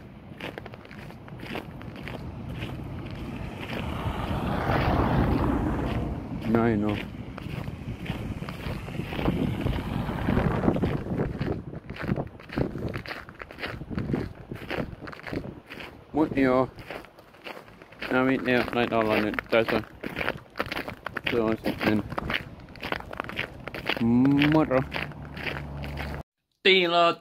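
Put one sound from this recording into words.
A young man talks close to a phone microphone outdoors.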